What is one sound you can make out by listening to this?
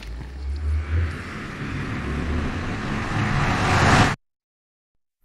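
A magical portal hums and swells in a rising whoosh.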